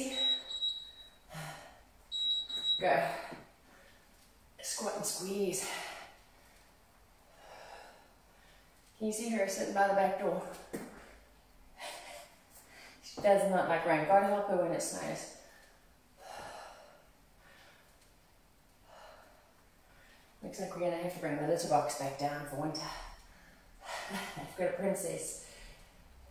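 A woman speaks clearly and with animation, instructing close to the microphone.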